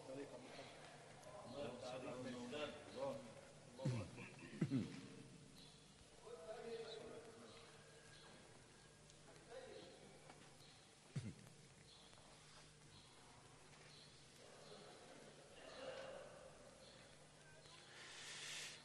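An elderly man chants in a long, drawn-out voice, heard from an old, hissy recording.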